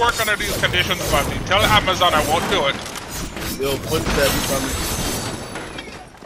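Sharp video game hits and clatters sound in quick bursts.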